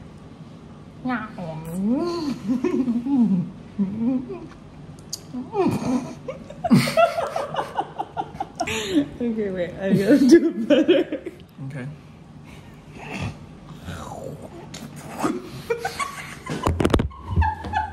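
A young man talks playfully close by.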